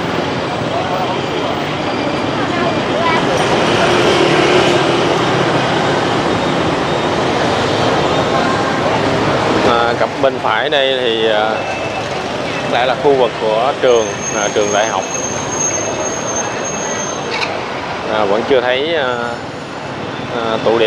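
Motorbike engines hum and buzz steadily as traffic passes along a street.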